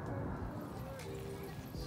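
A child's footsteps crunch on loose stones.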